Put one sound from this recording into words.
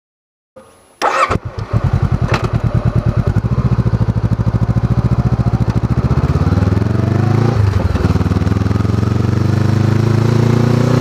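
A motorcycle engine starts and runs with a loud, throbbing rumble.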